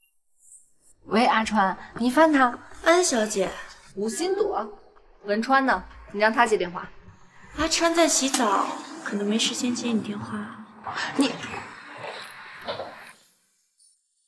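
Another young woman speaks calmly and smugly on a phone.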